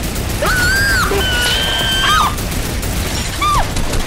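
A mounted machine gun fires in rapid bursts.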